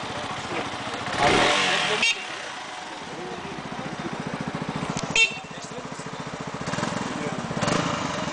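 A motorcycle engine idles with a rapid, steady putter.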